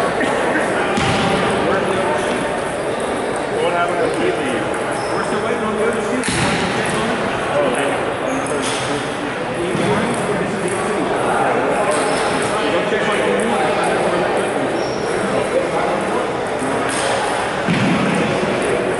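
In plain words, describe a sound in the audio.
A ping-pong ball clicks against paddles and a table in an echoing hall.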